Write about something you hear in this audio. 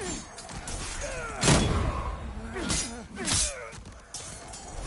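An enemy groans and cries out in pain.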